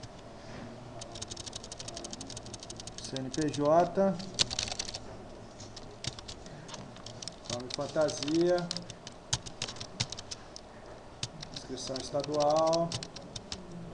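A keyboard clatters with quick typing.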